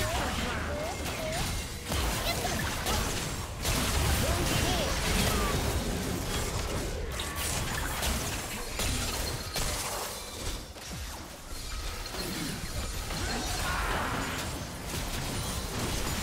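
Magic spells whoosh and crackle in a fast battle.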